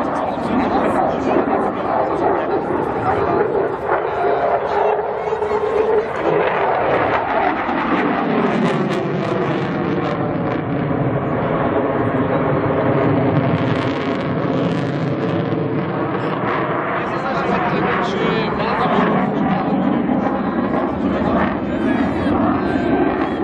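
A jet engine roars loudly overhead, rising and falling in pitch as the plane turns.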